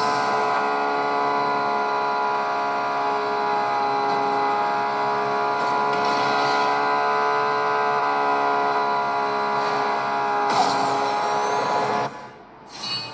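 A game car engine roars steadily through a small tablet speaker.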